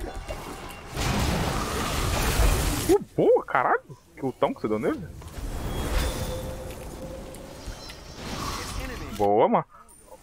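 Game sound effects whoosh and crash during a fight.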